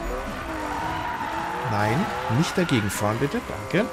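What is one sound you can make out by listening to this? A car scrapes and crashes against another car.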